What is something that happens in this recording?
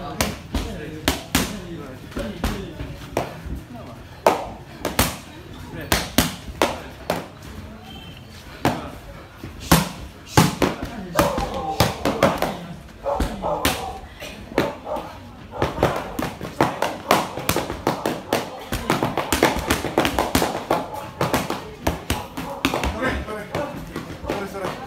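Boxing gloves smack sharply into padded mitts in quick bursts, ringing in a hall.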